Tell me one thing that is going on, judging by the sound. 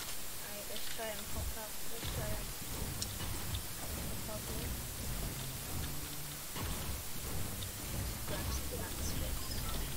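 A pickaxe strikes a wall again and again with hard knocks.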